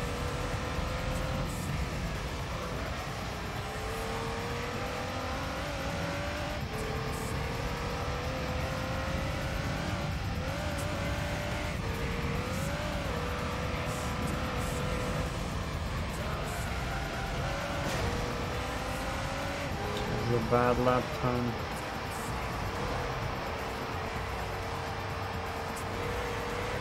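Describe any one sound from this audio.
A race car engine drones steadily, rising and dropping in pitch as the car shifts gears.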